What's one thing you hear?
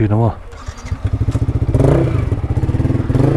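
A motorcycle engine idles with a fast, rumbling putter.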